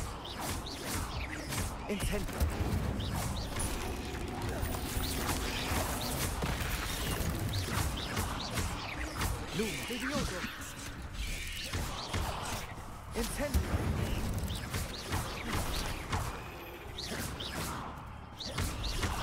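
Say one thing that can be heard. Magic spells crackle and blast in quick bursts.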